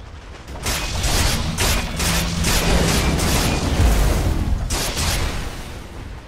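Game spells crackle and burst during a fast fight.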